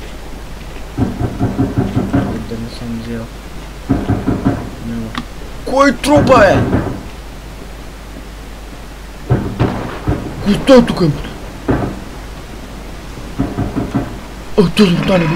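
Footsteps thud slowly over creaky wooden floorboards.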